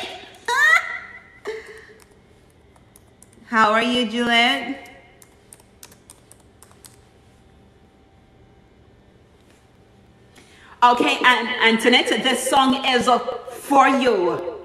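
A young woman sings into a microphone in short bursts with pauses between.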